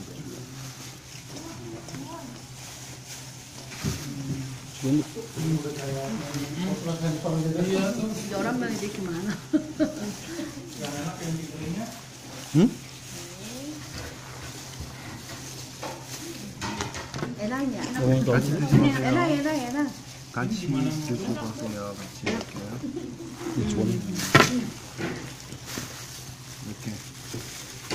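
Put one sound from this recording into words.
Plastic gloves rustle as hands mix food.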